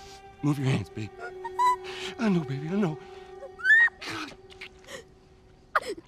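A young girl whimpers and cries in pain.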